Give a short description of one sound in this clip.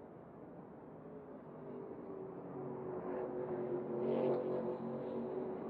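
Racing truck engines roar loudly as they pass close by.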